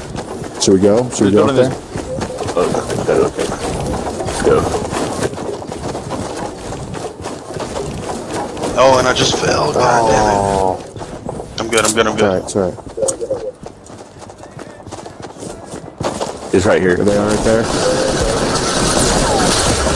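Wooden walls and ramps are built with quick clacking knocks.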